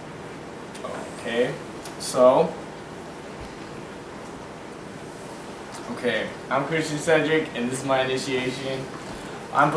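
Young men talk with animation close by indoors.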